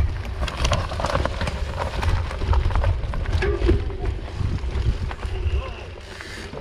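Bike tyres rumble and crunch over a rough dirt trail.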